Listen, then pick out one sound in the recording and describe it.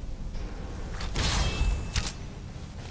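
A bowstring snaps as an arrow is loosed.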